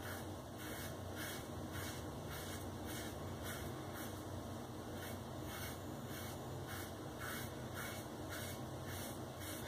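A razor scrapes across a lathered scalp in quick repeated strokes.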